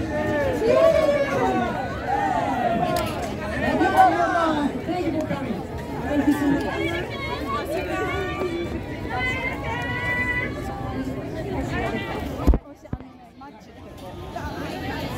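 A crowd of young men and women chatters and calls out close by.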